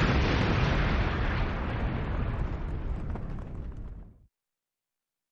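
A huge explosion booms and roars, then rumbles away.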